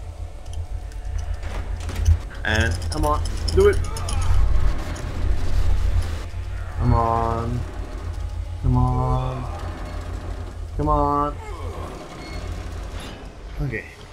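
A metal valve wheel creaks as it turns.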